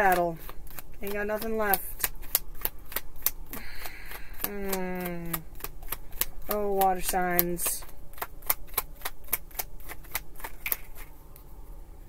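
Playing cards riffle and snap as they are shuffled.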